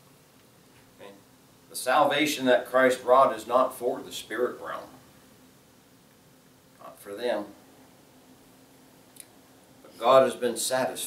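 A middle-aged man speaks with animation through a microphone, pausing between phrases.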